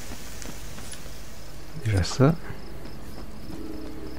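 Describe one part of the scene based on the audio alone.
Coins jingle as they are picked up.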